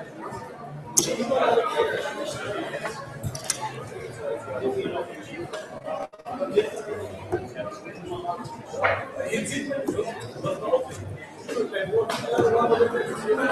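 Darts thud into a dartboard.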